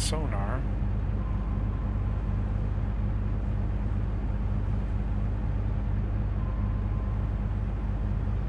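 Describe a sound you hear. A boat's inboard engine hums low as the boat cruises at low speed.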